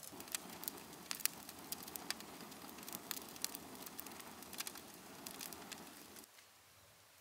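Burning twigs crackle and pop in a fire.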